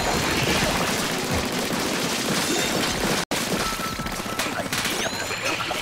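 Rapid wet splattering shots fire in quick bursts.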